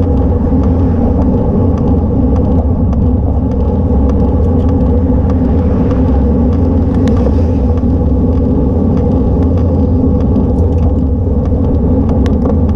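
Wind rumbles steadily against a microphone on a moving bicycle.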